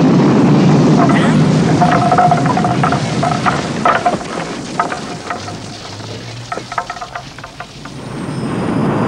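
Debris clatters and rattles down.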